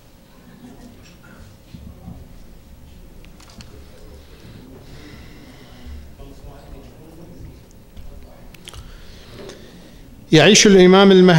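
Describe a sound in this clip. A middle-aged man speaks softly over a microphone.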